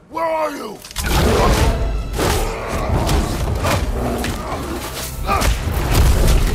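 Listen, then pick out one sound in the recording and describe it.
Heavy thuds and crashes sound in a violent struggle.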